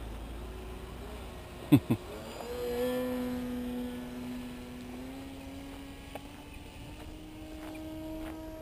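A small model airplane engine drones overhead, its pitch shifting as it flies past.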